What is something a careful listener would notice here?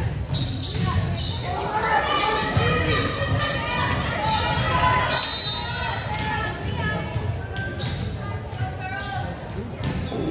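Young women call out and cheer with animation in a large echoing gym.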